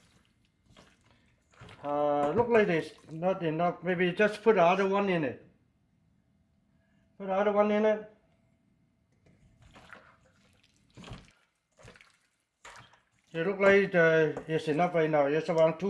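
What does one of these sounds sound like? Hands squish and toss food in a metal bowl.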